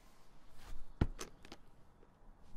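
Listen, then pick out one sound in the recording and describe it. Briefcase latches click open.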